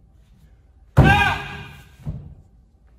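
A man lets out a sharp, loud shout that echoes in a large hall.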